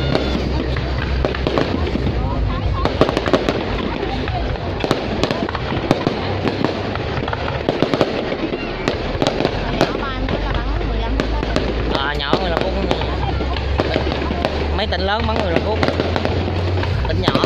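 Fireworks burst with loud bangs and crackles.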